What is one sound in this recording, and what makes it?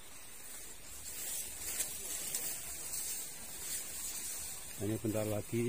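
Tall grass rustles and swishes as someone pushes through it.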